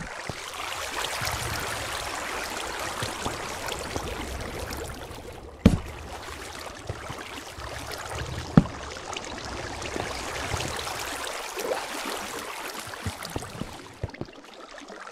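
Water flows and trickles steadily nearby.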